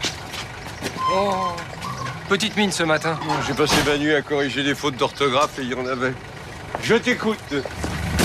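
An older man talks with animation close by.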